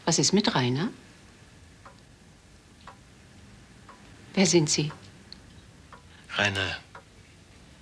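An older woman speaks calmly and close by, in short phrases.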